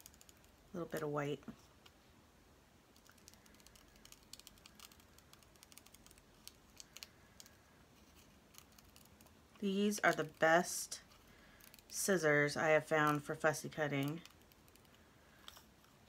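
Scissors snip through thin card with soft, quick cuts.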